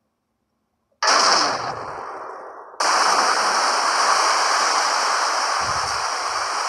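Rough sea waves surge and roar in a strong wind.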